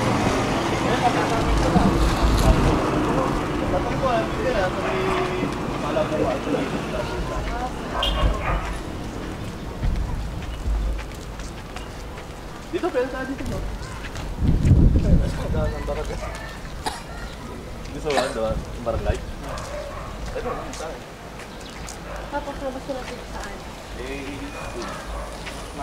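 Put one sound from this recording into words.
Young women chat casually close by.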